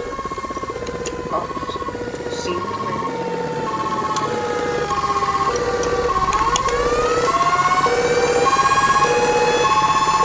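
A two-tone siren alternates high and low in a steady rhythm.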